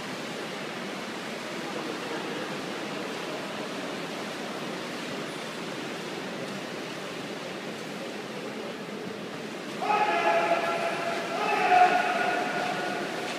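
Water laps softly in a large echoing indoor pool hall.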